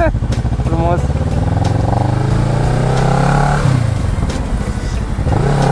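Wind buffets the microphone as the motorcycle speeds up.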